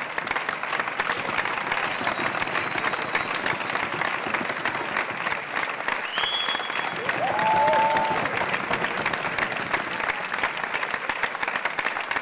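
A large audience applauds loudly.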